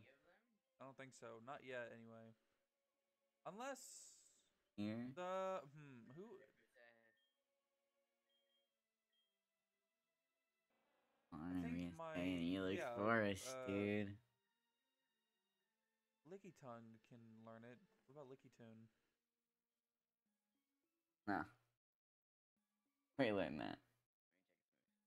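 A young man talks with animation, close to a microphone, in short bursts with pauses.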